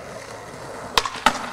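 A skateboard clacks sharply against concrete.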